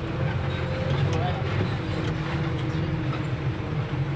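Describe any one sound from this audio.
A small truck passes by close outside.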